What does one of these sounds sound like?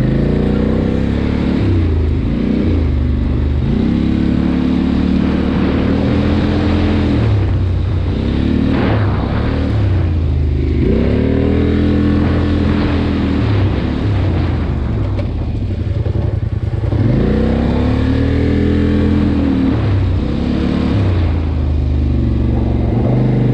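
An engine revs up and down loudly close by.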